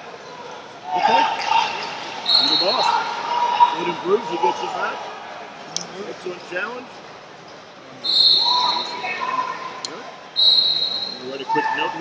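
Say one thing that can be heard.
Men and women talk and call out around a large echoing hall.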